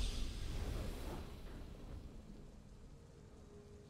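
A triumphant game victory chime rings out and slowly fades.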